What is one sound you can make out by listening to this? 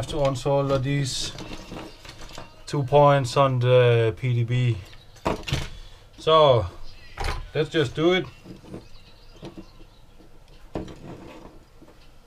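Small plastic parts click and rattle as they are handled.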